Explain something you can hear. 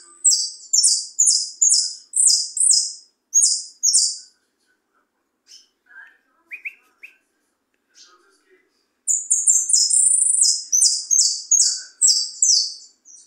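Young birds chirp in loud, rapid bursts from a nest box close by.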